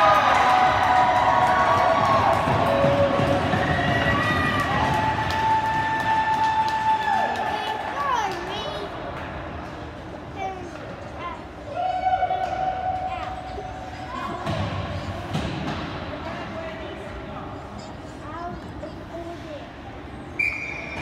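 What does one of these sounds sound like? A crowd of spectators chatters and calls out in a large echoing rink.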